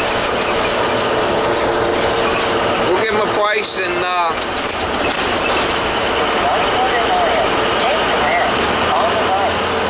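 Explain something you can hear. A bus engine rumbles steadily from inside the cabin.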